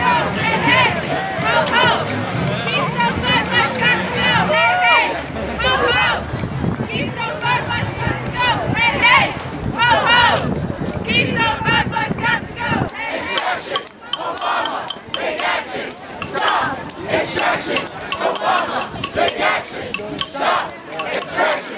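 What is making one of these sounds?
A crowd of marchers chants loudly outdoors.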